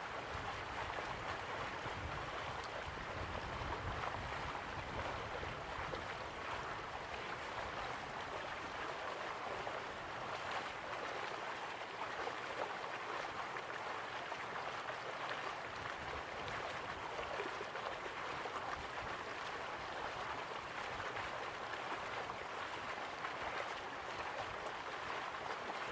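Water rushes steadily from distant waterfalls.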